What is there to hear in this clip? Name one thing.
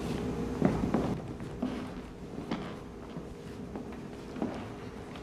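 An elderly man speaks briefly through a microphone in a large hall, with pauses.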